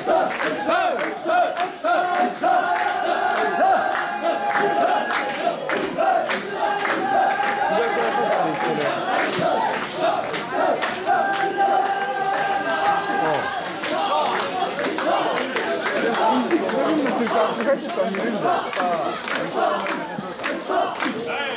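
A crowd of men and women chant loudly in rhythm close by.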